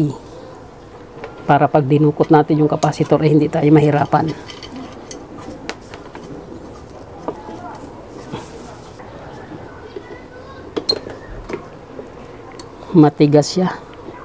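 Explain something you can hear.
Metal pliers click and scrape against a plastic fan hub.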